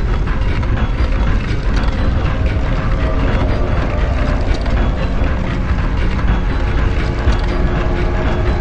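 A heavy stone pillar grinds and rumbles as it slowly moves.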